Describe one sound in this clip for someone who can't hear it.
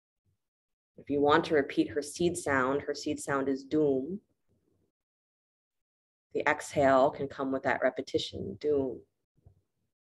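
A woman speaks calmly close by, in two short bursts.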